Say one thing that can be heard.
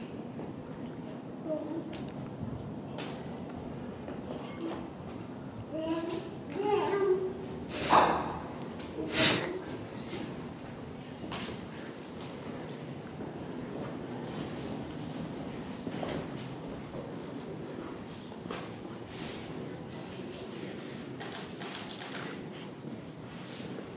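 A knife cuts through soft tomatoes on a board.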